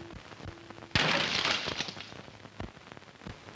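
A clay pot shatters and water splashes down.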